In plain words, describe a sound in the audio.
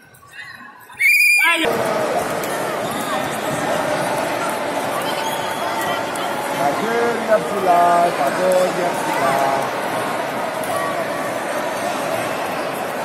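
A crowd of children and adults chatters loudly in a large echoing hall.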